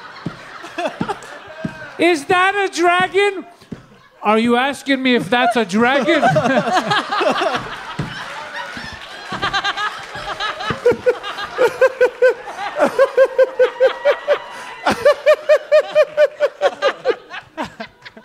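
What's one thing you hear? A woman laughs loudly and uncontrollably through a microphone.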